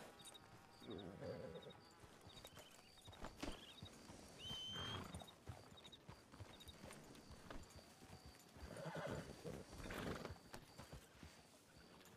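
Horses' hooves thud softly on grass.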